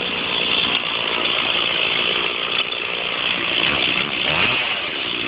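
A chainsaw roars loudly as it cuts into a tree trunk outdoors.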